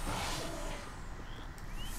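A small blast bursts with a crackle.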